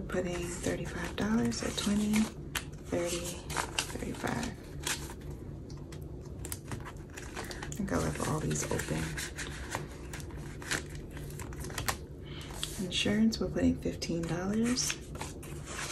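Paper banknotes rustle and crinkle close by.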